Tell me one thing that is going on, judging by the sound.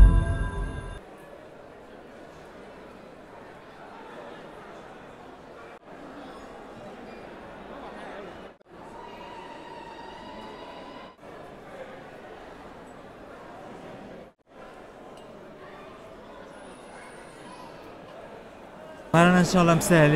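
A crowd murmurs faintly in an echoing hall.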